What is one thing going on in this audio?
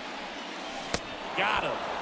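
A bat cracks sharply against a baseball.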